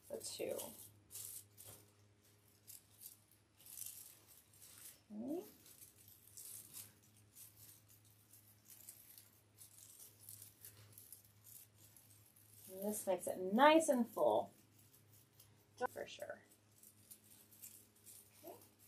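Plastic mesh ribbon rustles and crinkles as hands fold it.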